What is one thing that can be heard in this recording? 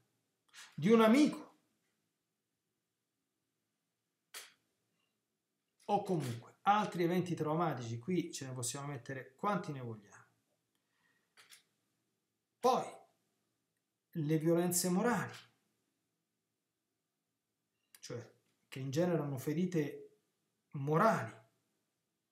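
A middle-aged man speaks calmly in short phrases, close to a microphone, with pauses between them.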